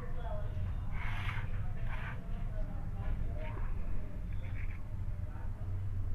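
A knife cuts through soft dough.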